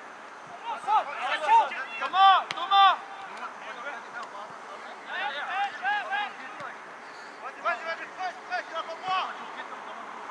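Young men shout to each other from a distance across an open outdoor pitch.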